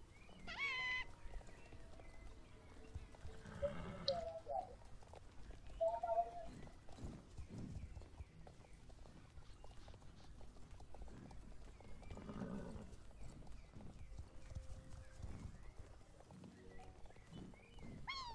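A horse's hooves thud on soft ground at a gallop.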